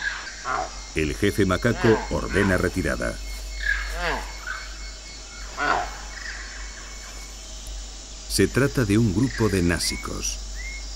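A monkey calls out with loud nasal honks.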